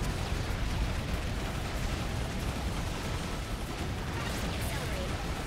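Video game explosions and gunfire crackle and boom rapidly.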